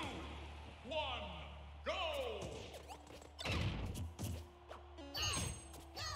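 Cartoon fighters' blows land with thumps and whooshes.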